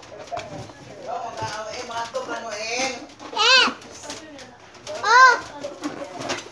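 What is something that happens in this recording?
A young girl talks and squeals close by.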